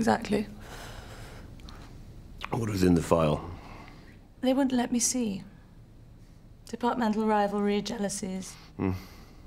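A woman speaks close by in a relaxed, teasing voice.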